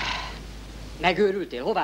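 A young man speaks loudly nearby.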